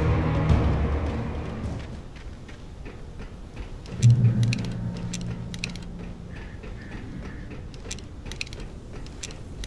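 Footsteps run quickly, first over grass and then clanking on a metal walkway.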